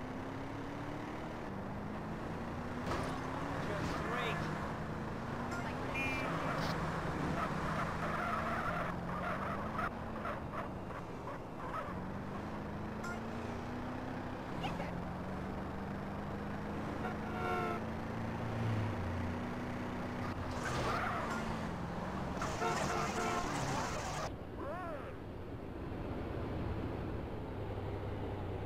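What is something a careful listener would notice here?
A car engine roars and climbs in pitch again and again as it shifts up through its gears.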